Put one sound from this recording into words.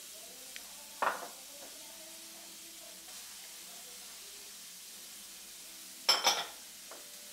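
A utensil scrapes and knocks against a metal pan.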